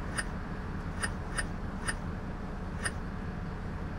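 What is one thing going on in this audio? An electronic ticket machine beeps as its keys are pressed.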